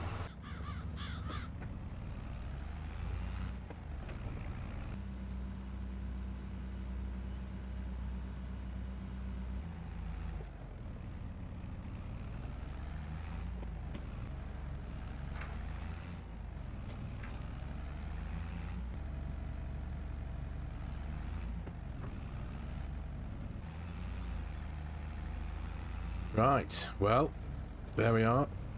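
A tractor engine rumbles steadily, rising and falling in pitch as it speeds up and slows down.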